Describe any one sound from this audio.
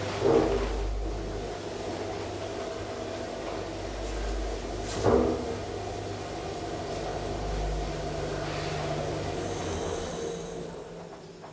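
An elevator hums steadily as it moves, then goes quiet.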